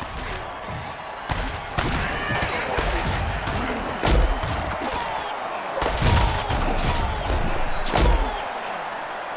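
A stadium crowd roars.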